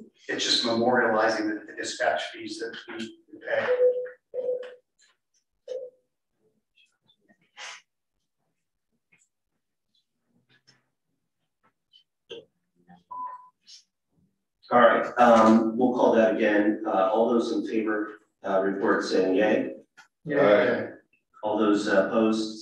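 A man speaks calmly through a microphone, heard over an online call.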